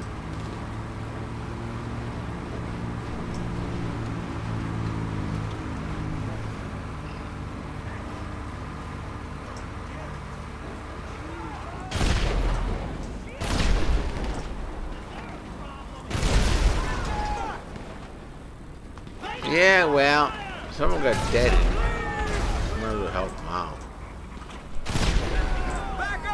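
A heavy tank engine rumbles and drones steadily.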